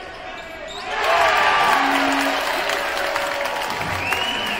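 A crowd cheers loudly after a score.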